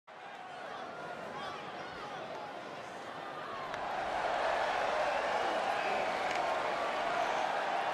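A large crowd cheers and whistles in a big echoing arena, growing louder.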